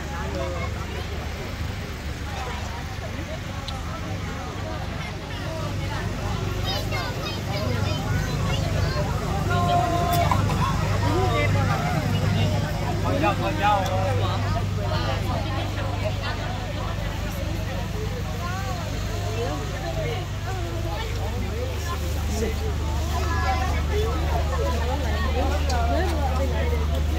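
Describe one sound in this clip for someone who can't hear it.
A crowd of men and women chatter outdoors in a lively babble.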